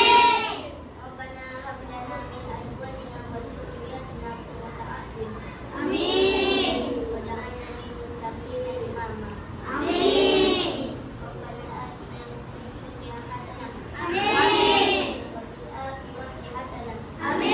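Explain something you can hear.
A young woman speaks calmly to the class.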